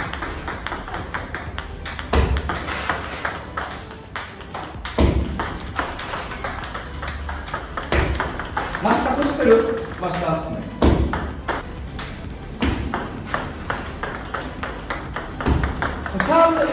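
A ball bounces sharply on a table.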